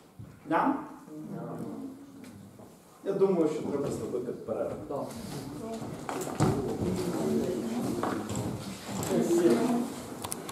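A man speaks calmly to an audience in an echoing room.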